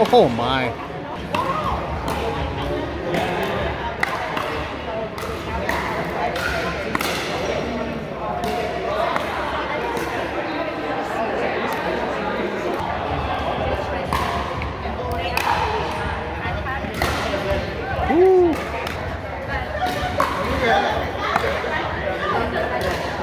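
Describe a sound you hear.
People's voices echo in a large hall.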